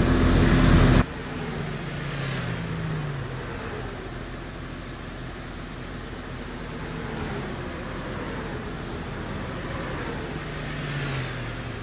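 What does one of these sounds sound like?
A truck engine rumbles more quietly from outside, its pitch rising and falling.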